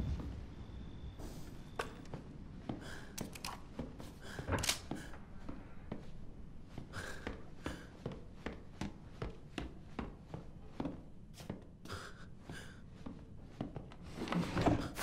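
Footsteps thud slowly across a creaky wooden floor.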